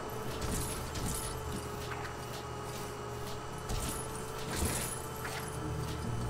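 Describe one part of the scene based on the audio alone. Small plastic pieces clatter and scatter as objects break apart.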